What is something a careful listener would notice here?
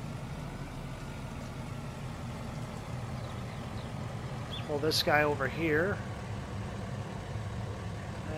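A pickup truck engine hums steadily as the truck drives slowly.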